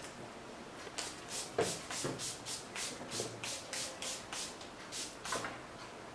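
A spray bottle spritzes in quick repeated bursts.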